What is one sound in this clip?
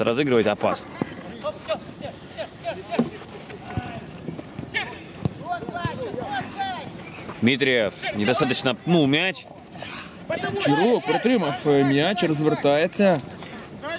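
Young men shout and call out to each other across an open pitch.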